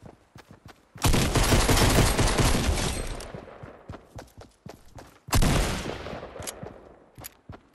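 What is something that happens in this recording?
Loud blasts boom and slowly rumble away.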